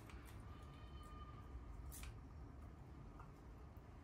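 Kitchen scissors snip greens.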